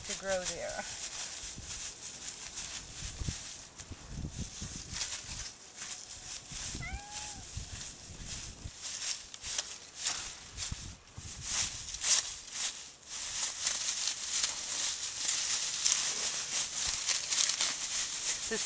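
Dry straw rustles and crackles as hands dig through it.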